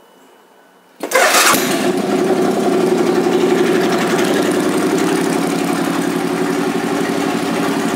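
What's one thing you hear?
A motorcycle engine starts and idles with a steady, deep rumble.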